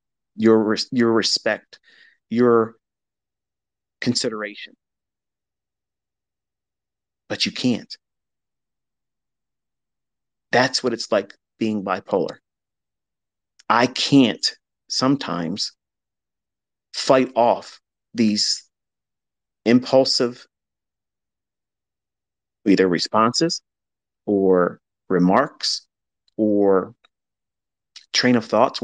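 A man speaks in short bursts with pauses between them.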